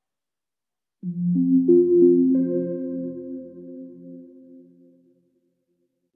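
A short musical chime rings out and fades.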